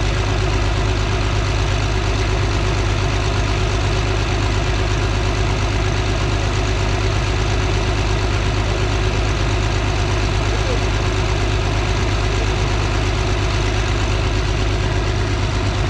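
A large diesel tractor engine idles with a steady, deep rumble.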